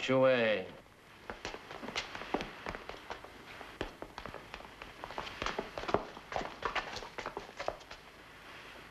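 A wooden table knocks and scrapes.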